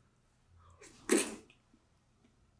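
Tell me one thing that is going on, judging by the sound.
A young man slurps food from a spoon.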